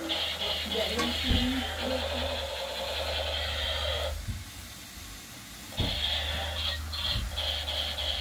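A metal spoon clinks against a pot.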